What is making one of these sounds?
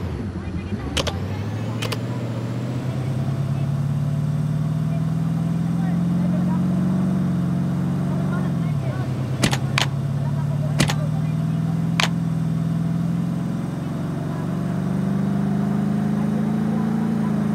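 An engine roars steadily as an off-road vehicle drives over rough ground, rising and falling in pitch.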